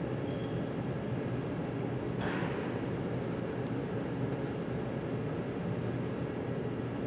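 A martial arts uniform snaps sharply with quick movements.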